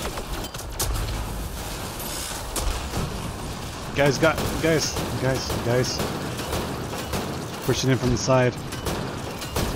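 Laser guns fire in sharp bursts.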